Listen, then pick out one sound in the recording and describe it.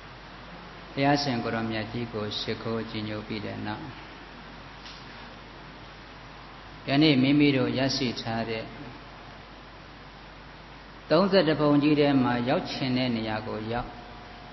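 A man speaks slowly and calmly into a microphone, in short phrases with pauses.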